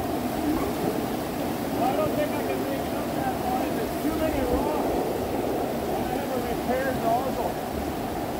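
A fast stream rushes and splashes loudly over rocks.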